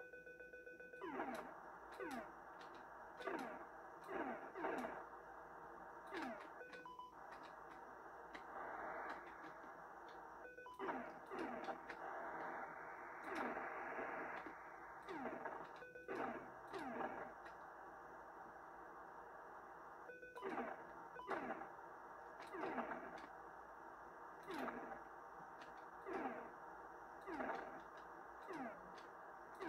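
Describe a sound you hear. A video game jet engine drones steadily.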